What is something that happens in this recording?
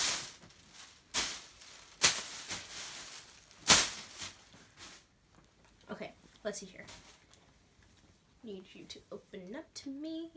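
Fabric rustles as clothes are shaken out.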